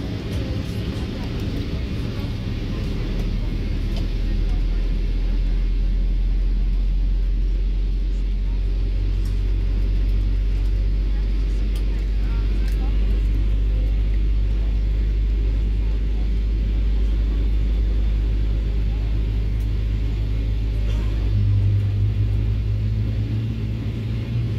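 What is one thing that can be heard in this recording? An aircraft cabin hums with a steady low engine rumble as the plane taxis.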